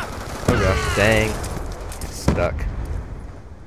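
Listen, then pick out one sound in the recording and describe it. Loud explosions boom close by and rumble.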